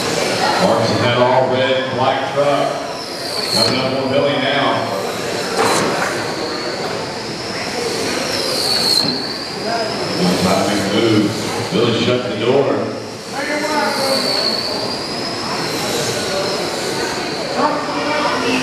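Small electric race cars whine loudly as they speed past and away.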